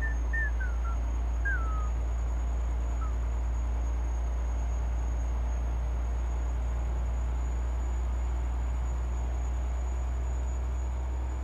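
A truck engine drones low and steady as it drives along a highway.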